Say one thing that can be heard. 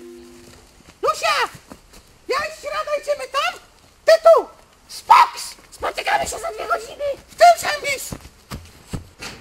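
A woman shouts excitedly nearby.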